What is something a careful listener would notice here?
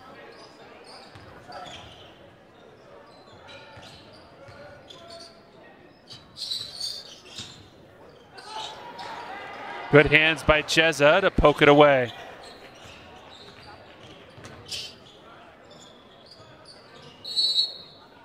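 Spectators murmur in an echoing gym.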